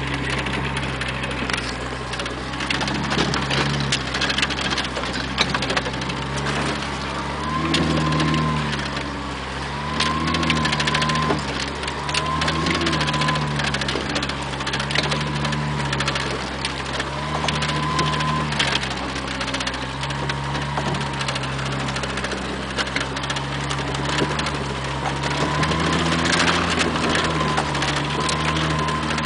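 An engine revs and labours, rising and falling in pitch.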